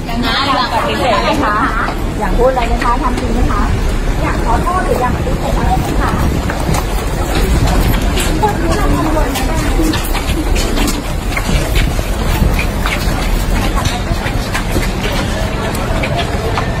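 Footsteps shuffle as a crowd jostles and pushes.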